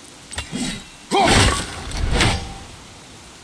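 A magical axe whooshes and lands with a loud rushing burst.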